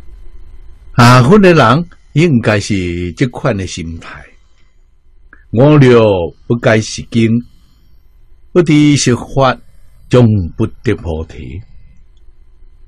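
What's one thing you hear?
An elderly man speaks calmly and slowly into a close microphone, in short phrases with long pauses.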